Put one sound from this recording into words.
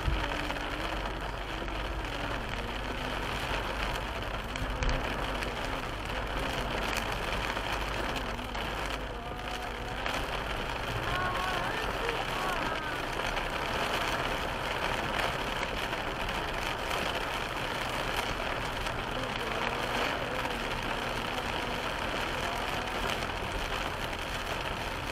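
Rain patters steadily on a car's windscreen.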